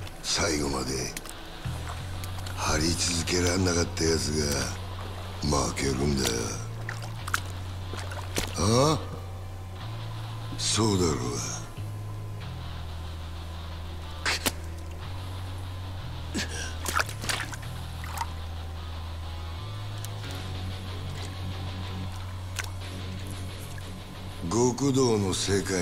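A middle-aged man speaks in a low, gruff, taunting voice, close by.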